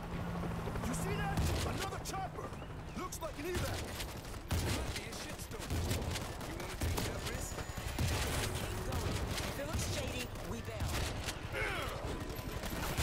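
A shotgun fires repeated loud shots.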